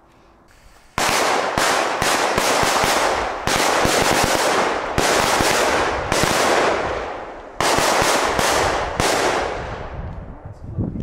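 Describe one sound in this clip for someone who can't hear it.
Fireworks hiss and roar loudly in bursts.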